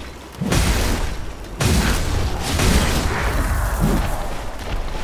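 Heavy blows thud and crash with a deep rumble.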